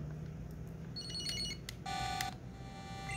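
A handheld game console plays a short, bright electronic startup jingle.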